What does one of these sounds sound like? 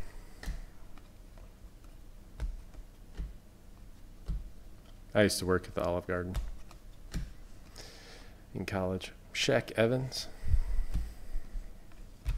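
Trading cards rustle and slide against each other in someone's hands.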